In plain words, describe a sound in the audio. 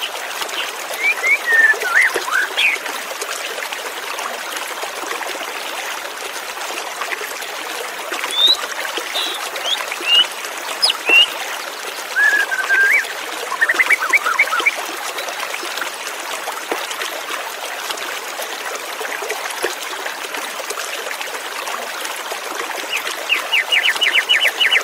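A white-rumped shama sings clear whistled phrases.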